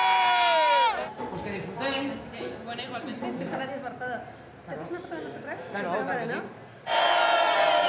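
Young women and a man chat and laugh close by.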